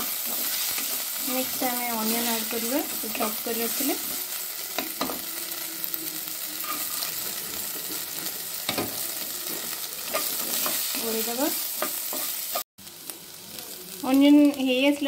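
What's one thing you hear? Food sizzles steadily in hot oil.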